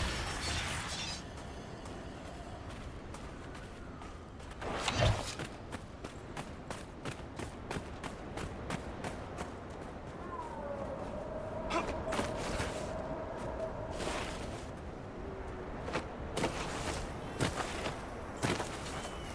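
Footsteps crunch quickly over sand.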